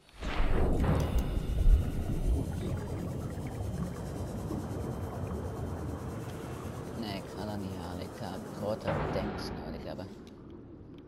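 A small submarine hums as it glides underwater.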